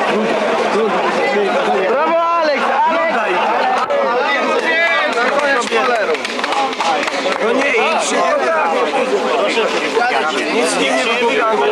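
A crowd of men talk and murmur all around, close by.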